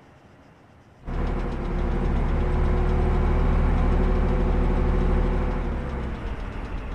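A tank engine roars loudly close by.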